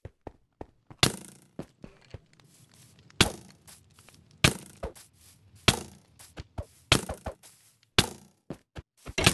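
Game sword strikes slash and hit with sharp whooshes.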